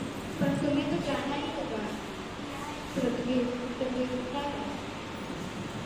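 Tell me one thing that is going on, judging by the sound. A second young woman answers into a microphone, heard through a loudspeaker.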